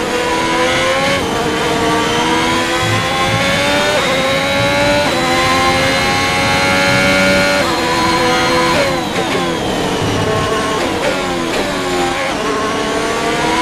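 A racing car engine revs high, rising through the gears and dropping as it brakes.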